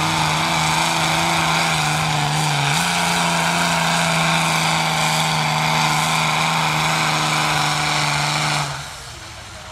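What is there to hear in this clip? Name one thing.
A tractor engine roars loudly under heavy strain.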